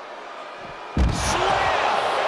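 A heavy body slams onto a hard floor with a loud thud.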